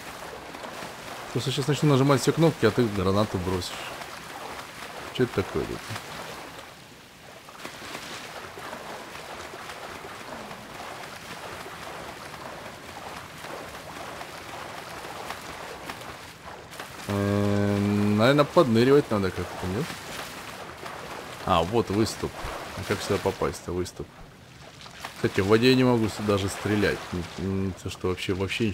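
Water splashes steadily as a swimmer paddles through it.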